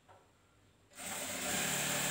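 A sewing machine runs with a fast whirring hum.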